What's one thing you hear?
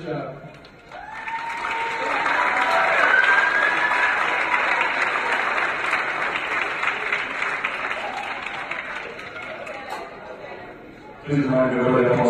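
People clap and cheer in a large hall.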